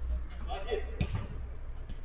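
A football thuds when kicked.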